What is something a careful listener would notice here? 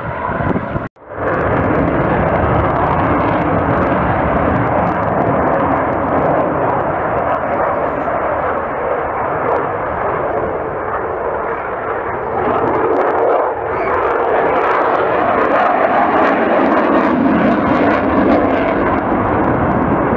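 A twin-engined fighter jet roars overhead.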